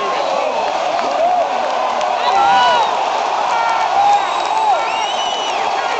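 Men in the crowd shout encouragement loudly.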